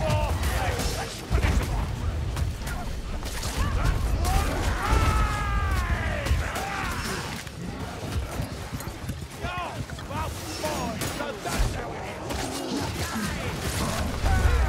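Creatures snarl and growl in pain as they are struck.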